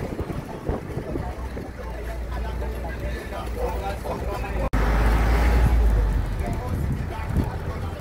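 Wind rushes past an open bus window.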